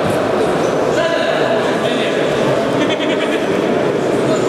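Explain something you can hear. Sneakers squeak on a hard floor in an echoing hall.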